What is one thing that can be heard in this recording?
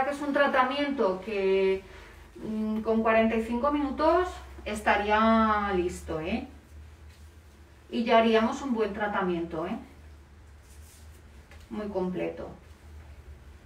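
A young woman talks calmly and close by, her voice muffled by a mask.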